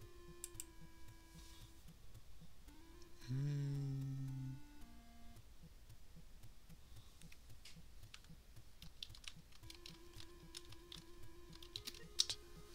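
Chiptune video game music plays with bleeping tones.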